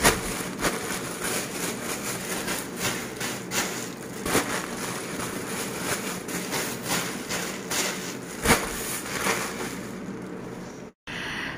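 Plastic crinkles and rustles close by.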